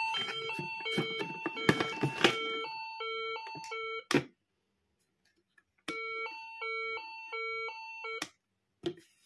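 A toy plays a bright electronic beeping melody.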